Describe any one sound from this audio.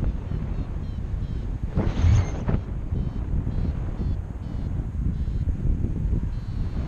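Strong wind roars and buffets against a microphone outdoors.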